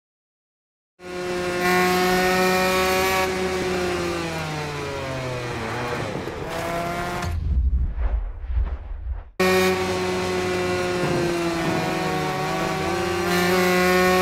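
A motorcycle engine revs loudly and shifts gears.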